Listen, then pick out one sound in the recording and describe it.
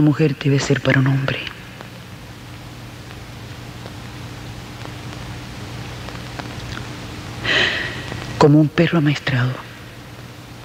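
A woman speaks quietly and emotionally, close by.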